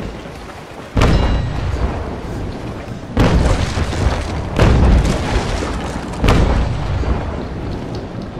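Cannons fire in heavy, booming blasts.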